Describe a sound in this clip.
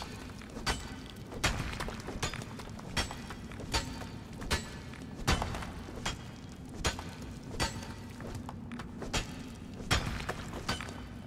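A pickaxe strikes rock again and again at a steady pace.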